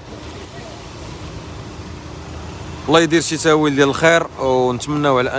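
Car tyres hiss on a wet road nearby.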